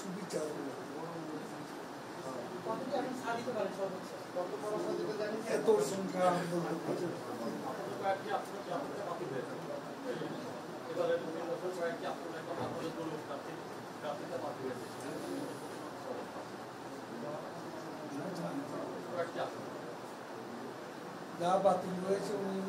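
An elderly man speaks steadily into microphones at close range.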